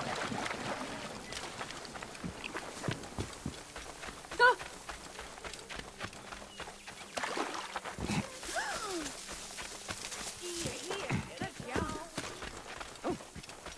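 Footsteps crunch on dirt and dry grass.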